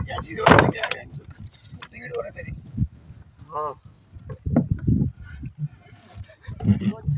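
Objects knock and thump against a wooden boat deck.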